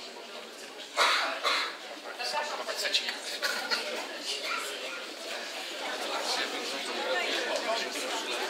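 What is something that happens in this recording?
A middle-aged man talks and laughs close by.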